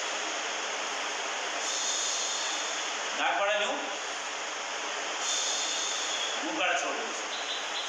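A man breathes in deeply and breathes out.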